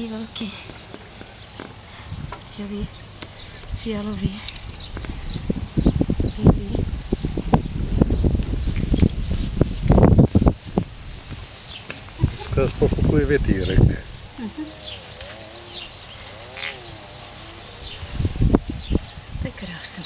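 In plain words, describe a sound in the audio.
Small seashells click and rattle against each other as they are handled.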